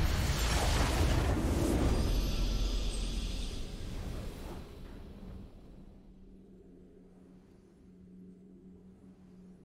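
A triumphant game fanfare swells and fades out.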